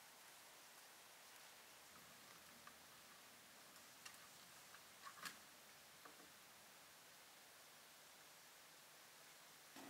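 A knife scrapes against a fish on a metal tray.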